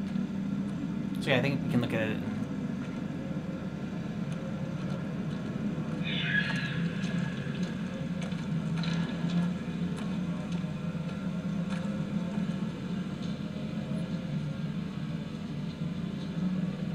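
A low, eerie drone hums steadily throughout.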